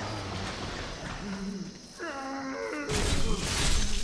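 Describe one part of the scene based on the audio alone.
A metal gate creaks open.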